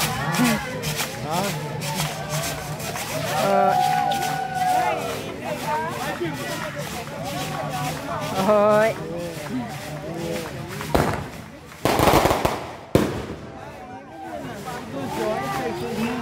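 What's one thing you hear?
A crowd of adults sings and chants loudly close by, outdoors.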